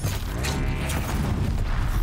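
A blow strikes metal with a crackling burst.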